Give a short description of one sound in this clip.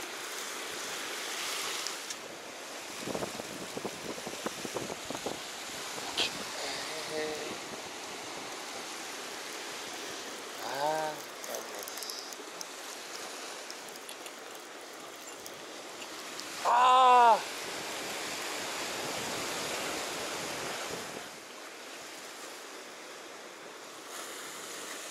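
Waves wash and splash against rocks outdoors.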